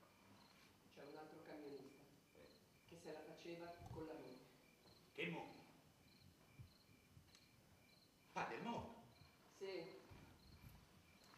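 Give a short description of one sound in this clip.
A young man speaks in a low, intimate voice.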